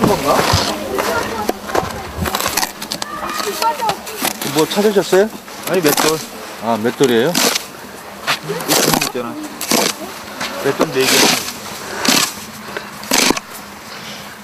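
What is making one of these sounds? A man brushes and scrapes snow off a stone.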